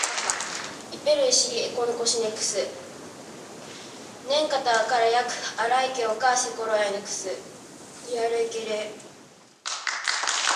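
A girl speaks into a microphone, her voice echoing in a large hall.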